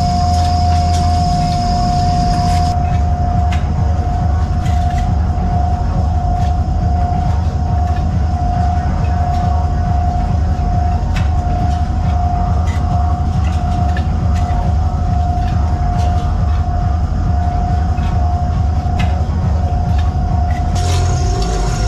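Metal parts clink and click as a worker handles coiled wire.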